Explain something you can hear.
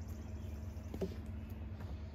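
A heavy wooden slab knocks dully against wood.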